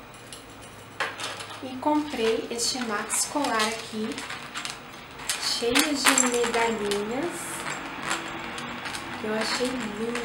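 A young woman talks animatedly close to a microphone.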